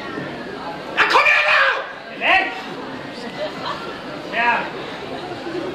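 Men shout loud encouragement.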